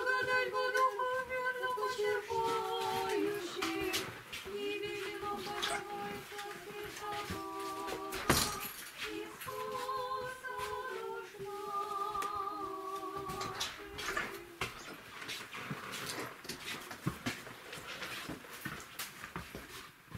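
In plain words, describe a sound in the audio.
Footsteps shuffle along a hard floor.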